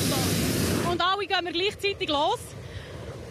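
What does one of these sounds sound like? A man speaks outdoors.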